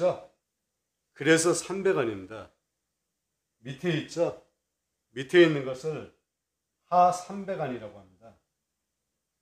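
A middle-aged man speaks calmly and close by, explaining in short phrases.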